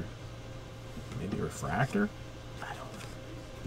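Trading cards rustle and slide against each other in someone's hands.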